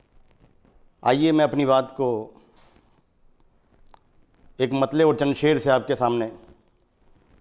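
A middle-aged man speaks calmly and closely into a microphone, in short phrases with pauses.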